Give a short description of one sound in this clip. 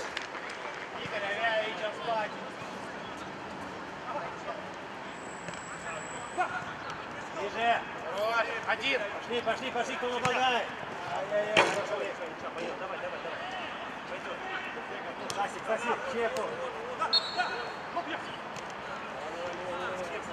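Young men shout and call out across an outdoor pitch.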